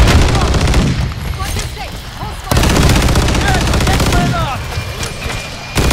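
A rifle fires in rapid bursts, loud and close.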